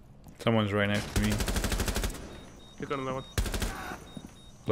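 Rapid gunshots fire in a burst.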